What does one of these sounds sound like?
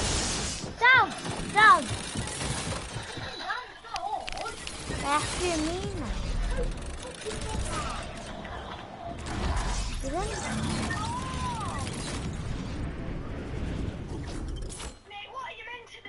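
Video game sound effects clatter and whoosh.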